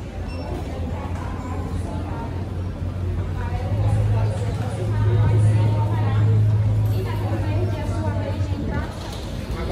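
Air conditioning units hum steadily overhead.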